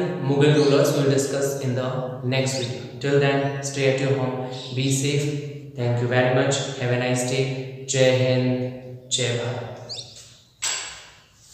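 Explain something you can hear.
A young man speaks calmly and clearly into a nearby microphone.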